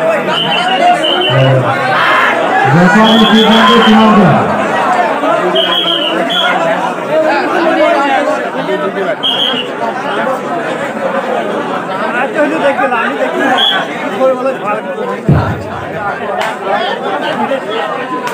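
A crowd chatters and cheers loudly outdoors.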